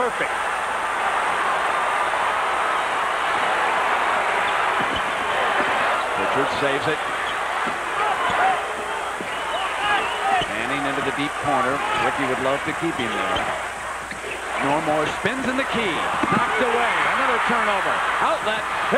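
A large crowd roars steadily in a big echoing arena.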